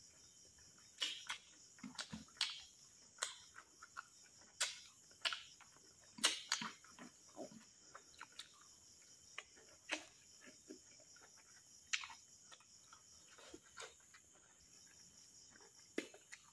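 A man chews and smacks his lips loudly close to a microphone.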